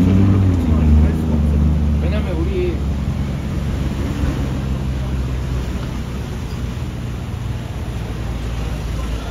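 An engine idles close by with a low, steady hum that fades away.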